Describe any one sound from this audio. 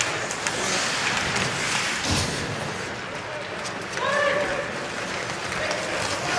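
A crowd murmurs and cheers.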